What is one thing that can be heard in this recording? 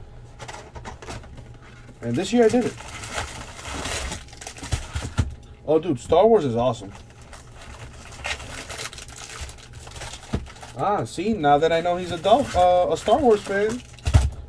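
A cardboard box rustles and scrapes as hands turn it over.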